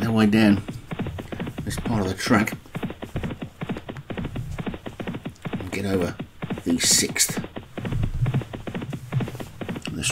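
Horses gallop fast over turf with drumming hoofbeats.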